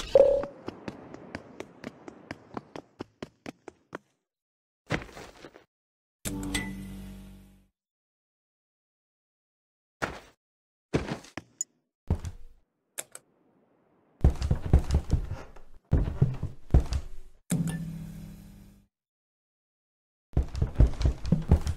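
Footsteps tap quickly on a hard floor.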